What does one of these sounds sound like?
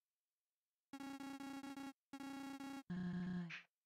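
A higher, buzzing run of electronic blips chatters briefly, like a robot's typed message.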